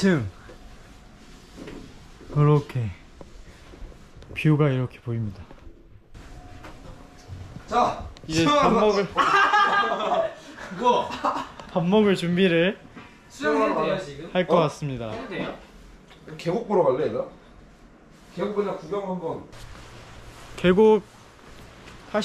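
A young man talks cheerfully and close by.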